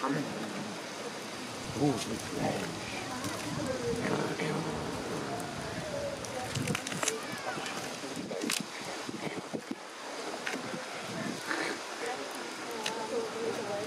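Bears chew and tear at raw meat with wet smacking sounds.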